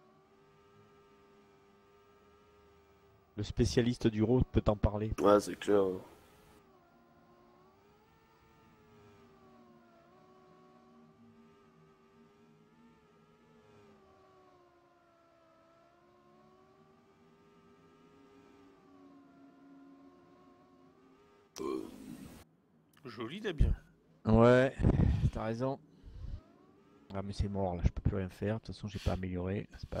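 A racing car engine hums steadily, its pitch rising and falling slightly.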